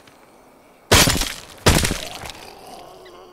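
A gun fires loud shots close by, with a short ringing echo.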